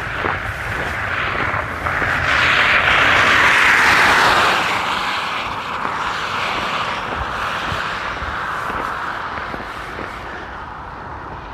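A car passes close by on a wet road, its tyres hissing, then fades away.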